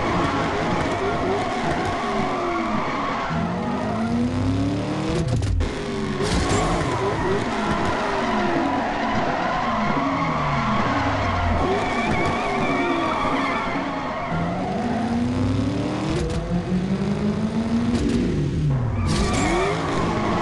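A car engine revs loudly, rising and falling in pitch as it shifts gears.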